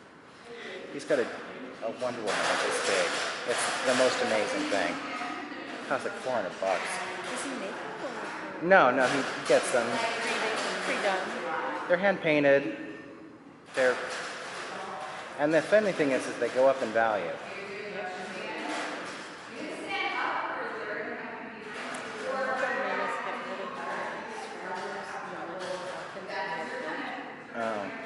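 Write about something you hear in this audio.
A man talks to a dog in an encouraging voice, echoing in a large hall.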